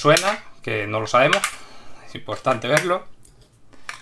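A plastic battery cover slides and snaps into place.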